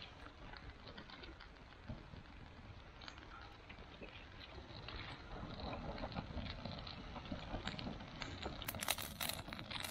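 Dry grass and twigs rustle as a hand piles them on the fire.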